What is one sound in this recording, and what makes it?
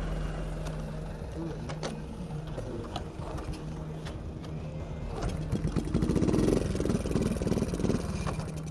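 A motor scooter engine idles and putters.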